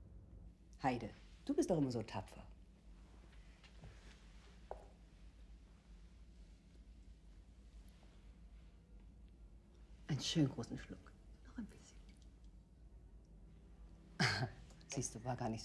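A woman speaks softly and warmly, close by.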